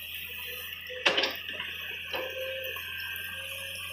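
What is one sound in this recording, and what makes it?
Soil and stones clatter as an excavator bucket dumps them into a truck.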